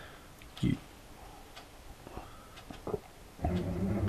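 A man sips a drink.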